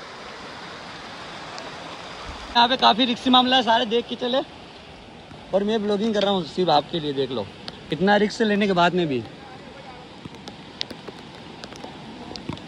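A stream rushes steadily nearby.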